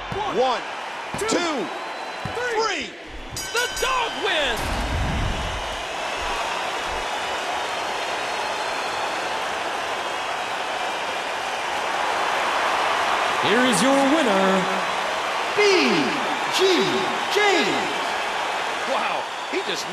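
A large crowd cheers and whistles in a big arena.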